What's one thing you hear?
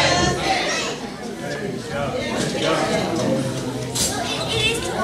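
A woman speaks through a microphone in a large echoing room.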